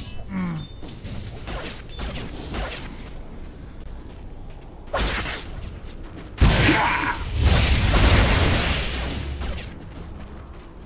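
Game spell effects crackle and boom in bursts.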